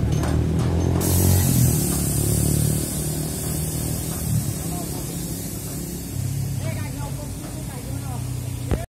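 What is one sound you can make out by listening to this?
A fogging machine hisses loudly.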